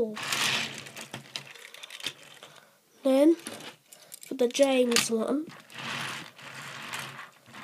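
Small toy trains roll and rattle across a hard surface.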